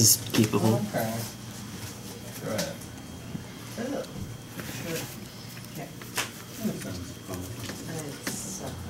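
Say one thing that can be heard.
Playing cards are shuffled by hand with soft flicks.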